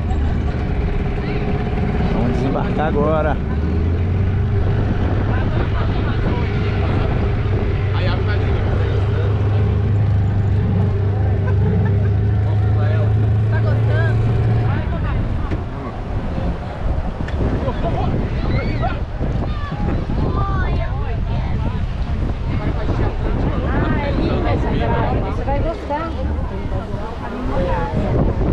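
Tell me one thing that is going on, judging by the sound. A crowd of people chatters and calls out on a beach.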